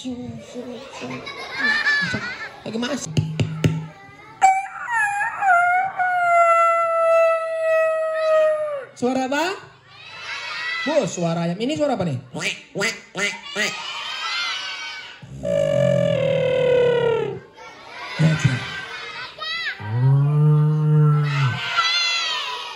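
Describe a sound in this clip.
A young man beatboxes into a microphone over loudspeakers.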